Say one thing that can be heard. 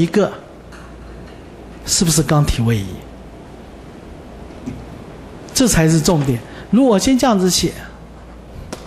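A middle-aged man speaks through a microphone in short bursts.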